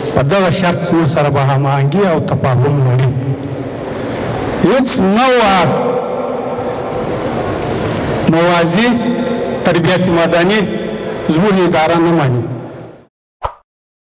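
An elderly man speaks slowly and earnestly into a microphone.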